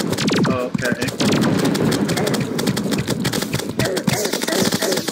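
Rapid game sound effects of magic shots and hits crackle and zap without pause.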